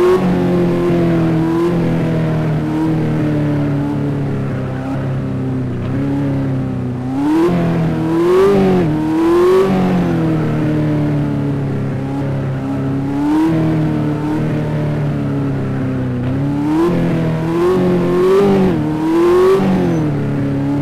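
A car engine hums steadily and revs up and down as a car drives.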